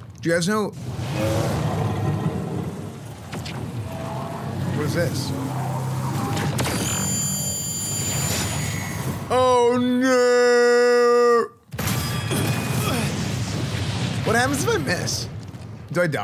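Deep rumbling game effects roar throughout.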